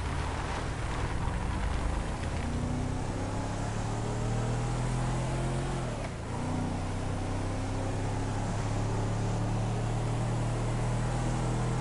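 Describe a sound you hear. An engine hums steadily as a vehicle drives along.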